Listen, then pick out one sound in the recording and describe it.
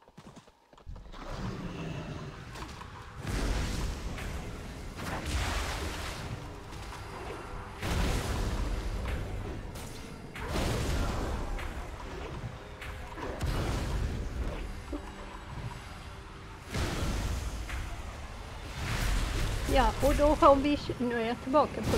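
Game spells crackle and whoosh in bursts during a fight.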